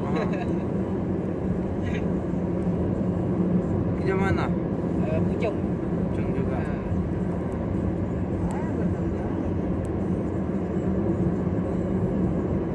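A car drives along with a steady rumble of tyres on the road.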